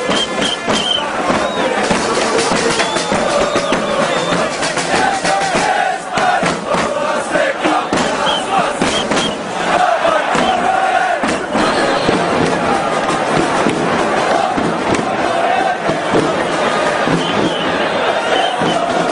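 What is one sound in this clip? A large crowd of men chants and sings loudly.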